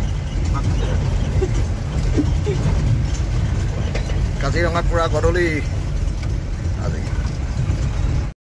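Tyres rumble and bump over a rough dirt track.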